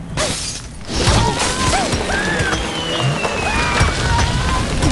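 Wooden and stone blocks crash and tumble down.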